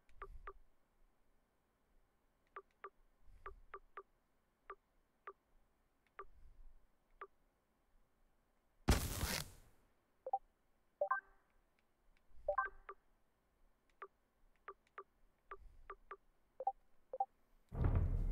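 Short soft menu blips click now and then.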